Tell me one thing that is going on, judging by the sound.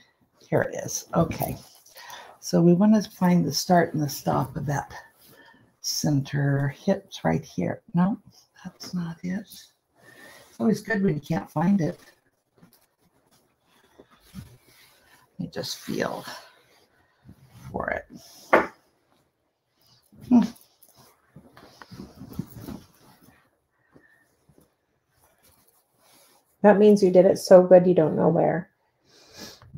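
A quilt's heavy fabric rustles as it is folded and handled.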